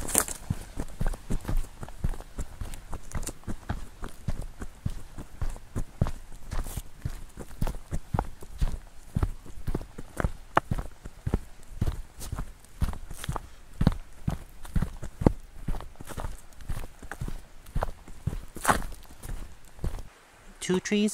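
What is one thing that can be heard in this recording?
Footsteps crunch quickly on a dirt trail.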